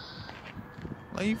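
A young man speaks briefly close by.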